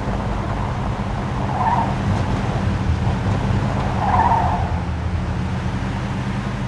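An old car engine rumbles steadily as the car drives along.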